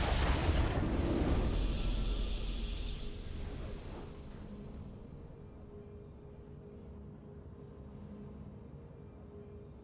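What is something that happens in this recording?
A victory fanfare swells and fades.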